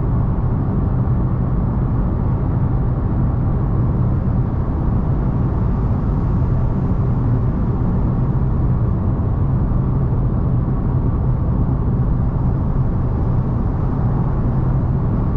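A car drives steadily along a highway with a low road rumble.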